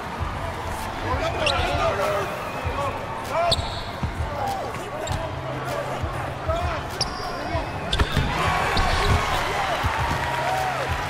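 Sneakers squeak sharply on a hardwood court.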